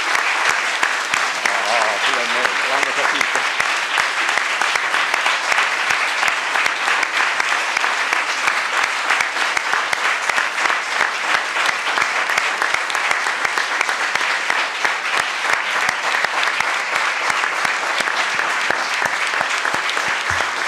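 A large crowd applauds steadily in an echoing hall.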